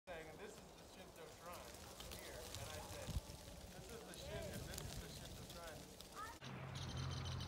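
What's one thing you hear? Leaves rustle in a light breeze.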